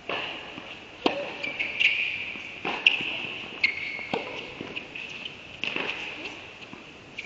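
Tennis balls are struck with sharp pops of a racket, echoing in a large indoor hall.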